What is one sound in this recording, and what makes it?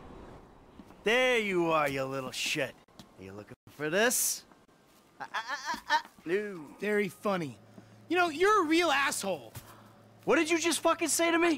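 A man shouts angrily nearby.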